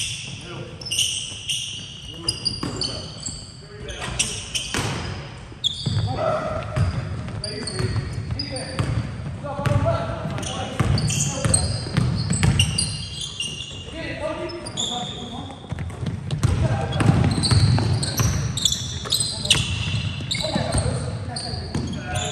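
A basketball bounces on the floor, echoing in a large hall.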